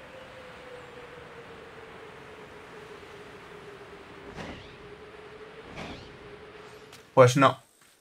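Wind rushes steadily past during a glide.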